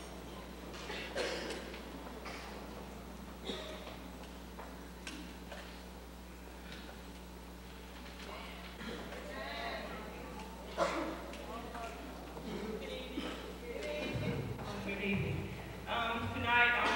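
A crowd of young men and women chatter and call out in a large echoing hall.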